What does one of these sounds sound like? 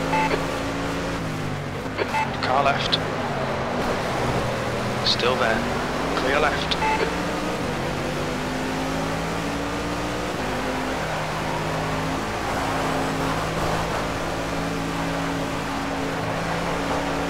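A racing car engine roars and changes pitch as it speeds up and slows down.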